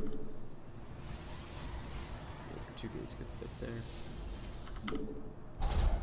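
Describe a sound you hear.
A shimmering electronic hum swells and fades.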